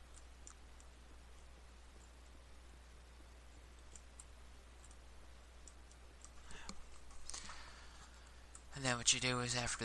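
A pickaxe chips at stone blocks.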